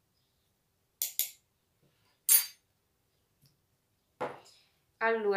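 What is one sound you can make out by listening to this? A glass jar clinks as it is set down on a table.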